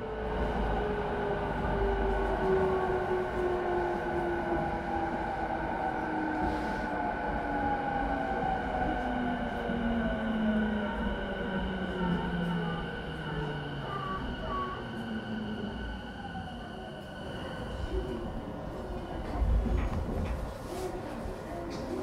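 An electric train hums steadily while standing at a platform.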